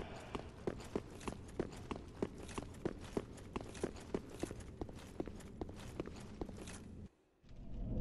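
Armoured footsteps clank rhythmically on stone.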